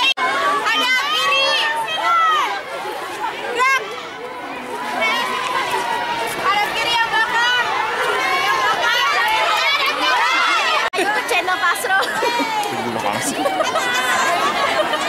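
A crowd of young girls talk and shout excitedly close by.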